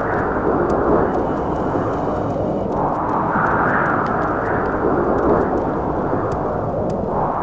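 A strong wind roars and gusts steadily.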